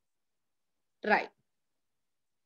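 A young woman speaks briefly and calmly through a microphone.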